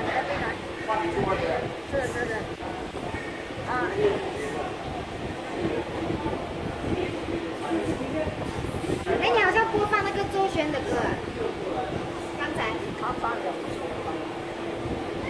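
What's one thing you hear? An elderly woman talks calmly nearby.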